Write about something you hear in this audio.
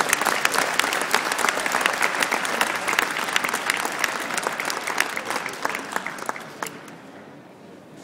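A crowd murmurs and chatters in a large echoing space.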